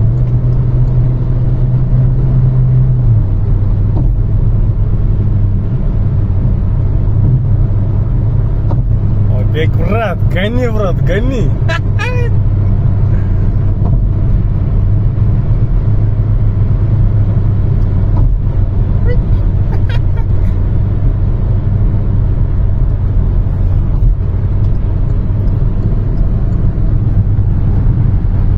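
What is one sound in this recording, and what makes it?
Tyres roar steadily on a road.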